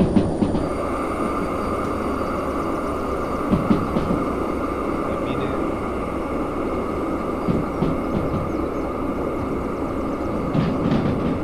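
Train wheels clatter over rail joints.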